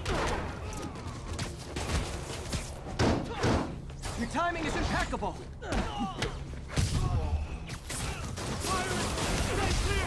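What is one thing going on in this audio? Punches and kicks thud in a fast fight.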